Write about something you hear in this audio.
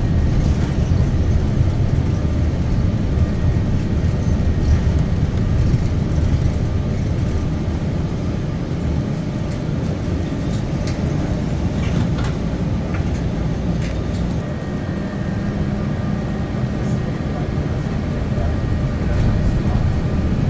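Tyres rumble on the road, heard from inside a car.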